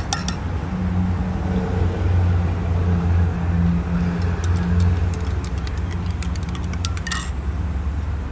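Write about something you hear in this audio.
A metal spoon clinks against a glass jug while stirring.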